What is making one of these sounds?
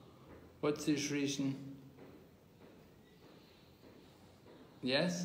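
An elderly man speaks close to the microphone in short phrases.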